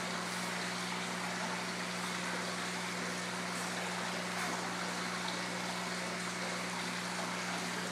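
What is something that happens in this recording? Koi splash and slurp at the water's surface.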